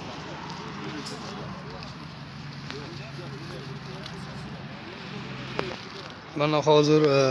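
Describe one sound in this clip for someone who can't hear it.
Several men murmur quietly nearby, outdoors.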